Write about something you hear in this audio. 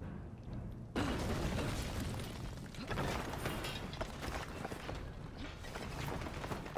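Bricks and debris crash down onto a metal grate with a loud rumble.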